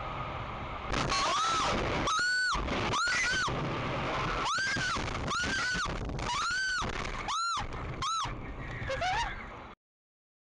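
Tyres squeal in repeated rising and falling bursts as a car skids and spins.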